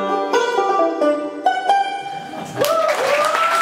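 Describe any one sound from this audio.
A banjo is picked in a quick run of bright notes.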